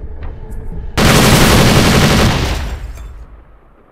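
A rifle fires a loud rapid burst.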